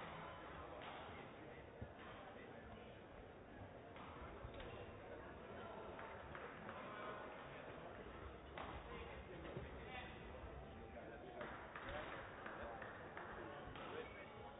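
Young men and women chat casually at a distance in a large echoing hall.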